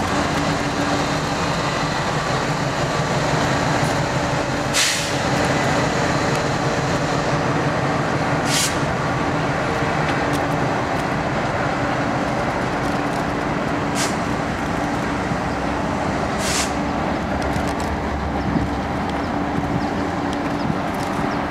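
Freight car wheels clatter over the rails.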